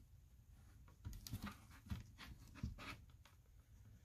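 Pages of a cardboard book rustle as they turn.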